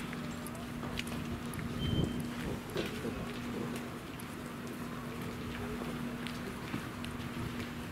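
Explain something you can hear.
An electric train hums steadily while standing at a platform.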